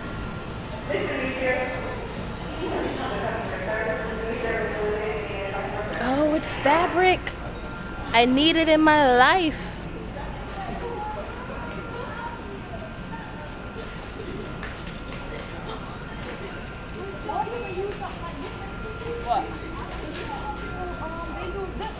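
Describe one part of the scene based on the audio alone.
A young woman talks close by, casually.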